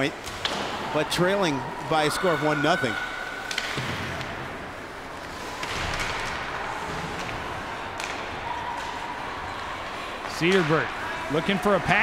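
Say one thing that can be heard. Ice skates scrape across the ice in a large echoing hall.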